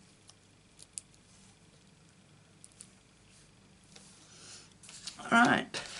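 Paper rustles and taps softly under fingers.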